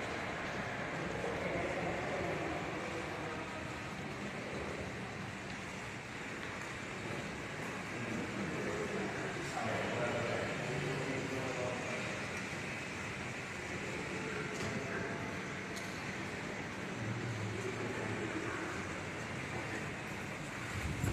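Men talk in low, indistinct voices nearby.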